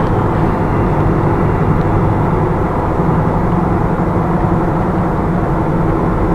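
A vehicle's engine hums steadily from inside the cab as it drives along a road.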